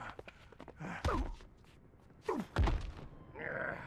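Heavy blows and thuds land in a fight.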